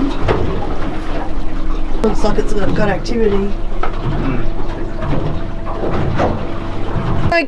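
A boat engine hums steadily and close by.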